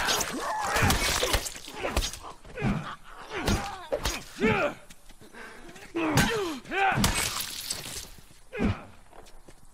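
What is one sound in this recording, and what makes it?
Heavy blows thud and crack in a close fight.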